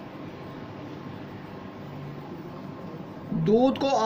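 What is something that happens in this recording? A spatula stirs liquid in a pan.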